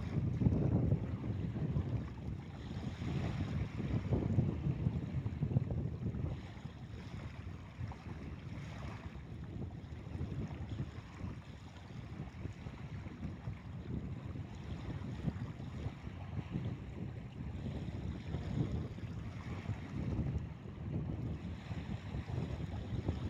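Small waves lap gently on a beach.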